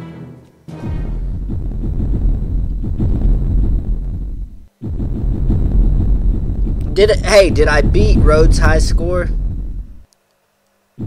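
Explosions boom with a deep rumble, one after another.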